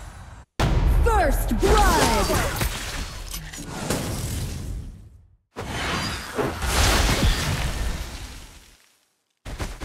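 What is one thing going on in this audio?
Magic attacks whoosh and crackle in a fast battle.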